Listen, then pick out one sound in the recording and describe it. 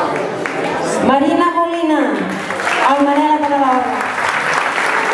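A crowd of children and adults cheers loudly in two long calls.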